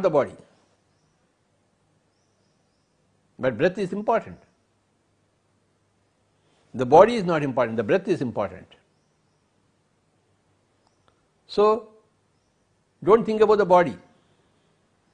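An elderly man speaks slowly and calmly into a close microphone, in short phrases with long pauses.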